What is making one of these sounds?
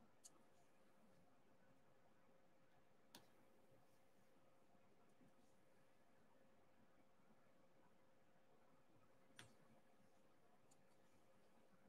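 Small beads click softly as they are placed one by one.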